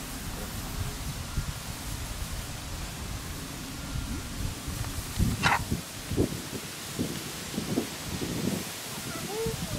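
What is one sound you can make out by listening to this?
A plastic sheet rustles and crinkles as it is shaken.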